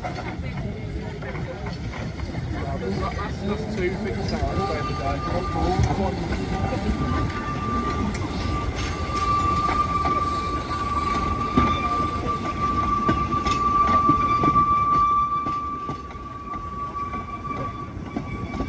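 A small steam locomotive chuffs and rumbles as it moves along the track.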